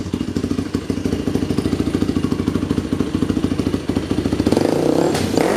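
A small engine idles close by with a rapid chugging.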